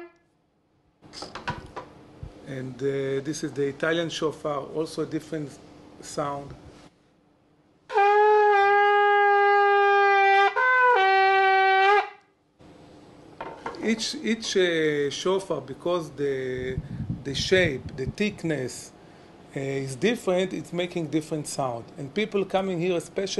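A middle-aged man talks calmly and with animation close by.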